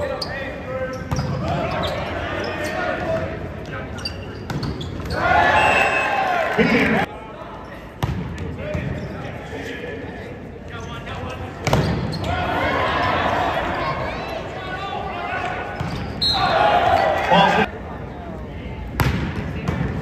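A volleyball is spiked with a loud smack.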